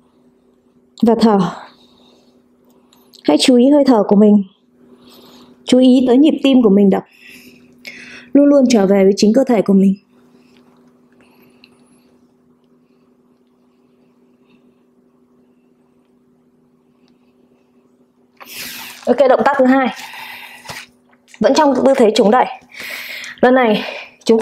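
A young woman speaks calmly and softly, close to a microphone, with long pauses.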